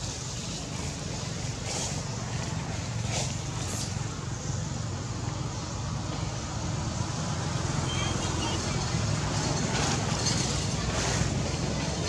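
Leaves rustle as monkeys move through the branches.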